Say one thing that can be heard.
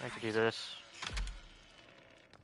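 A door handle rattles and a latch clicks.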